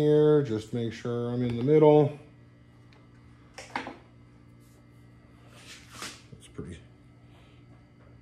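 Plastic parts rattle and tap as they are handled.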